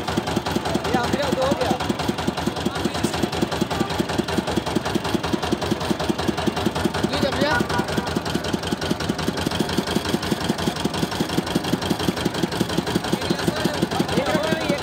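A juice-pressing machine runs with a fast, steady thumping rhythm.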